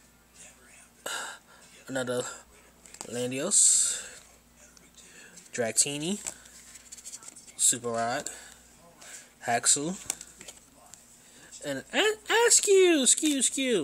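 Stiff cards rustle and flick as they are handled up close.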